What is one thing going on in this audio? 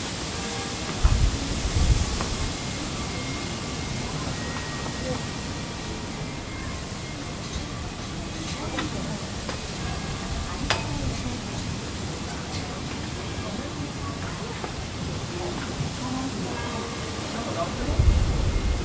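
Wind blows outdoors in occasional gusts.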